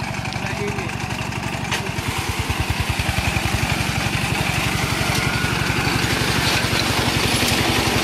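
A flail mower whirs through grass and dry leaves.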